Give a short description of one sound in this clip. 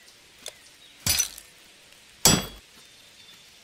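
Metal armour clanks sharply twice as it is equipped.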